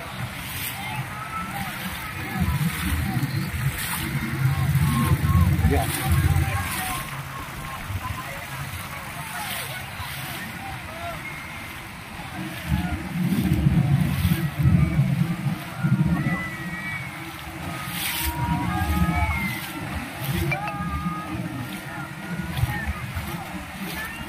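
River water splashes and laps against a boat.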